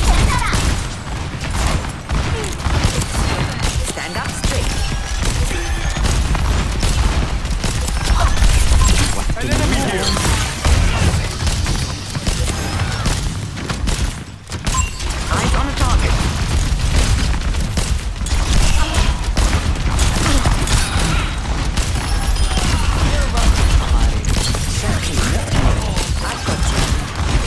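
Energy rifle shots crackle and zap rapidly.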